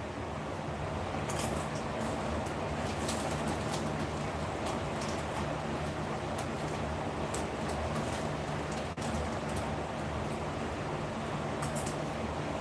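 An electric lamp hums steadily.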